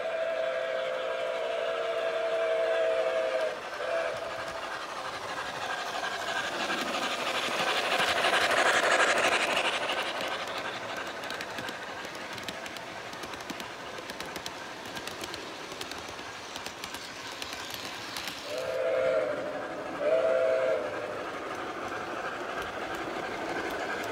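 A model train rolls along its track with a steady rattling clatter.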